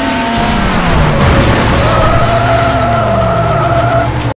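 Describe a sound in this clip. Tyres screech as a car skids sideways.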